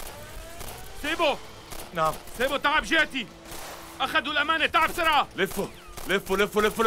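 Another man shouts tensely nearby.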